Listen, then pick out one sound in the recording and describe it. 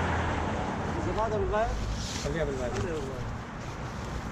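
A man speaks in short bursts close by.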